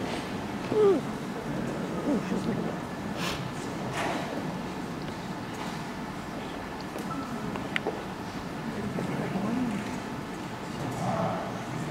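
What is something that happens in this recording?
Men and women chat quietly in a large echoing hall.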